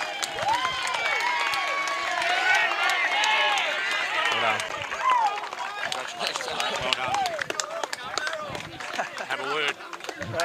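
A crowd of men and children cheers and whoops loudly.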